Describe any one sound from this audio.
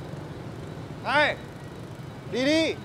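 A young man calls out loudly, close by.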